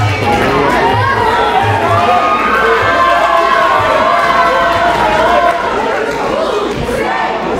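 A crowd cheers and shouts in an echoing hall.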